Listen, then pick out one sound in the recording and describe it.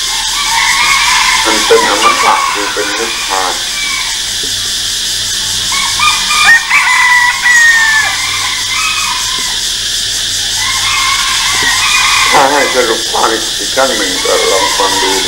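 An elderly man speaks calmly into a microphone, heard through a loudspeaker.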